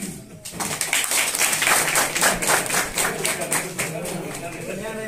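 A crowd claps hands in a room.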